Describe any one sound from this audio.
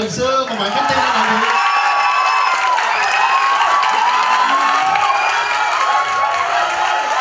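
A young woman speaks brightly into a microphone over loudspeakers.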